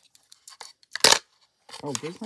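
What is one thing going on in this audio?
A small plastic toy clacks down into a plastic tray.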